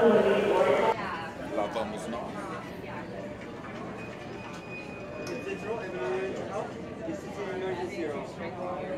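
Adults chat and murmur nearby in an echoing hall.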